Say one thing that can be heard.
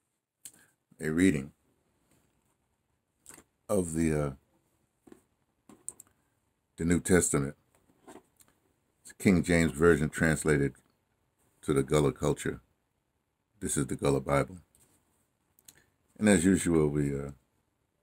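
An older man speaks slowly and calmly, close to a microphone, with long pauses.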